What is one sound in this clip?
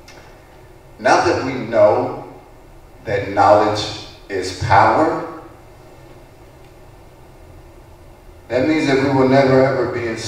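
A man speaks through a microphone and loudspeakers, in short bursts with long pauses.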